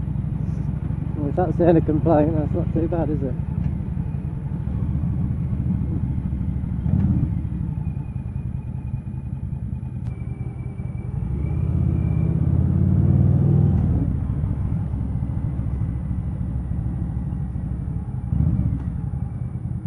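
A motorcycle engine rumbles steadily, swelling as it speeds up.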